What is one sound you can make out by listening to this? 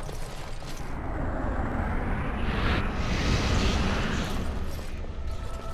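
A magical blast whooshes and rumbles.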